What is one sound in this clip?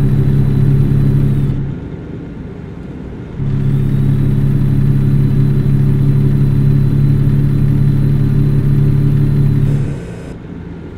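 A truck engine hums steadily from inside the cab.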